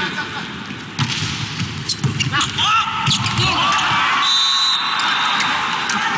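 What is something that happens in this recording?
A volleyball is struck with sharp slaps during a rally.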